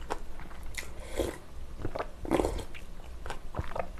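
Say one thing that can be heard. A young woman slurps soup from a bowl.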